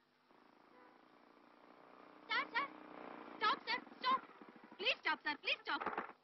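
A young woman speaks.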